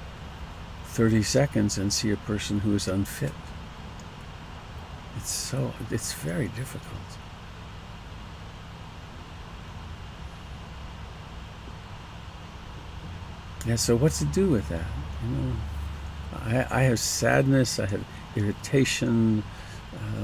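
An elderly man speaks calmly and close to a headset microphone, with pauses.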